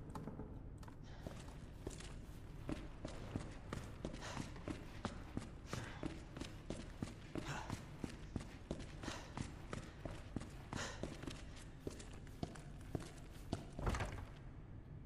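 Footsteps run quickly over a hard floor in a large echoing hall.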